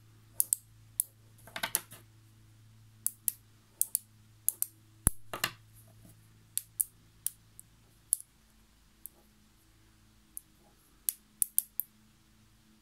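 Small metal magnetic balls click and snap together sharply.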